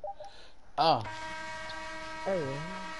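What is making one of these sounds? A game's buzzer sounds steadily as the period ends.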